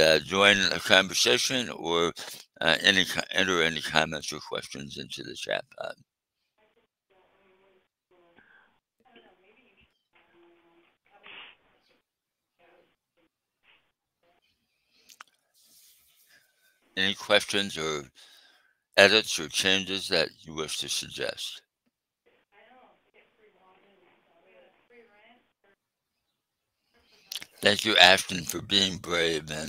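An older man speaks calmly through a headset microphone over an online call.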